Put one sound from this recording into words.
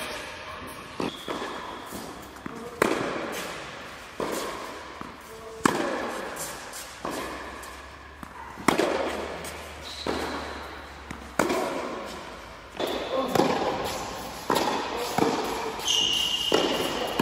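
A tennis racket strikes a ball with sharp pops that echo around a large hall.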